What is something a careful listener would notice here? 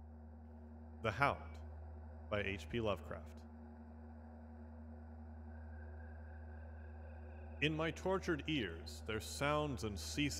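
A man speaks in short, slow phrases close by, with pauses between them.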